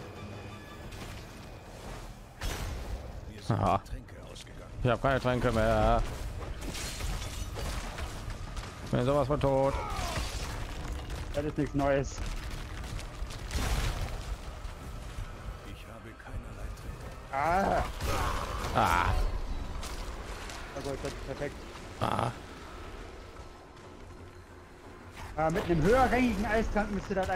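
Magic blasts and weapon hits crash during a fight.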